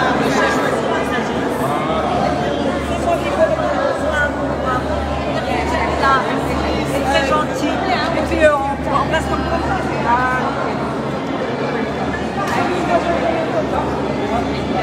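A crowd of men and women chatter loudly nearby in a large echoing hall.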